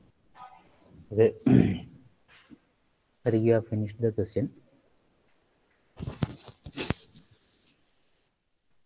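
A young man speaks calmly through a microphone, in short bursts with pauses.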